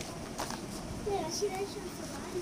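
A young child calls out nearby.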